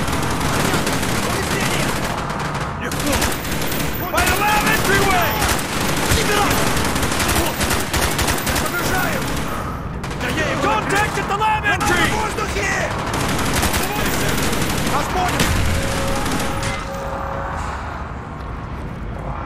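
A rifle fires repeated loud shots in bursts.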